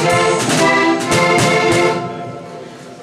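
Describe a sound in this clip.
An accordion plays a lively tune through loudspeakers.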